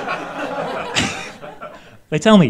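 An audience laughs.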